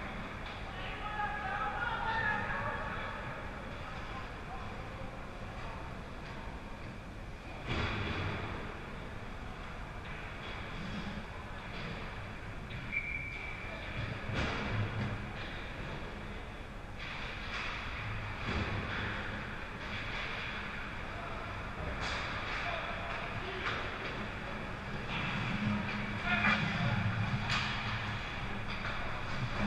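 Skates scrape and swish across the ice in a large echoing rink.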